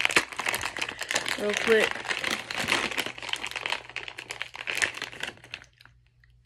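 Plastic crinkles and rustles close by.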